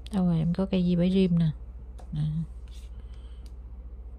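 A glass phone clicks as it is picked up from a pile of phones.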